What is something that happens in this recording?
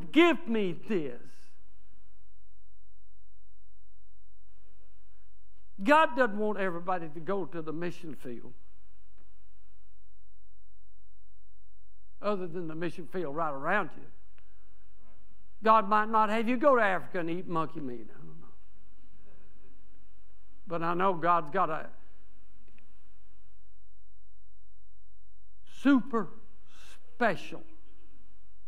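An elderly man speaks with animation through a microphone in a large echoing hall, pausing between phrases.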